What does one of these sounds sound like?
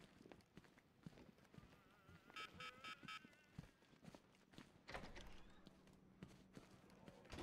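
Heavy footsteps thud on a hard floor at a steady walking pace.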